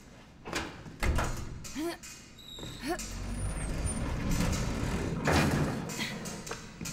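A heavy metal door scrapes and rumbles as it is pushed open.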